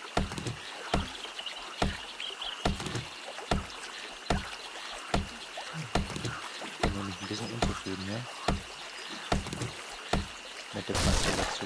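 An axe chops into wood with repeated thuds.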